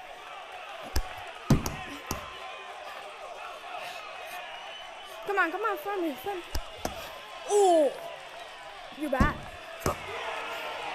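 Boxing gloves land punches with dull, sharp thuds.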